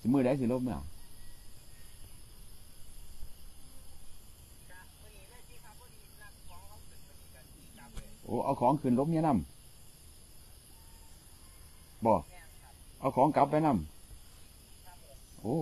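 A middle-aged man talks calmly on a phone, close by.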